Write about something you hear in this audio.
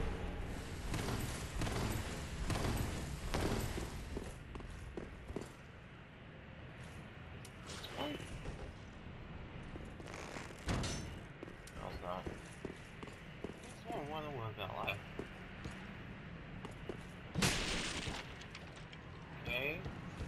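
Heavy armoured footsteps thud on wooden boards.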